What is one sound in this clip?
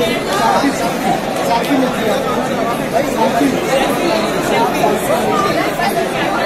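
A young woman speaks amid the crowd.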